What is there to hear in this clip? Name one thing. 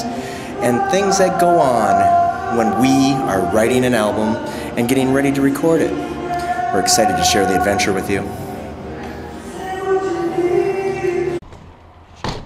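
A middle-aged man sings loudly and expressively close by.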